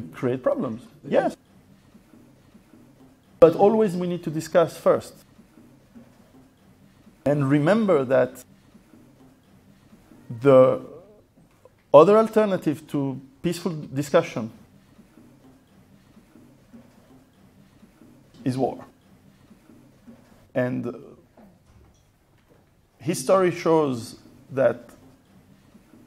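A middle-aged man speaks with pauses into a microphone, heard through a loudspeaker in a large room.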